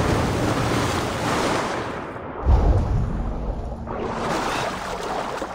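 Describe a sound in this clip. Water laps and churns at the surface.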